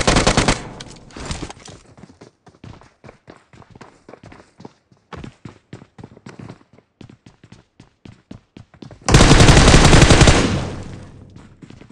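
Footsteps patter quickly.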